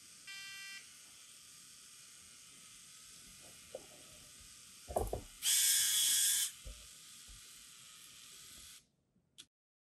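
A small robot's motors whir softly as it rolls along.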